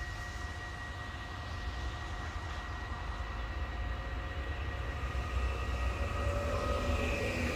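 Wind blows outdoors with a low rumble.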